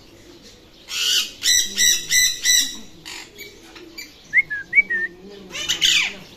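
A parrot squawks loudly in short bursts.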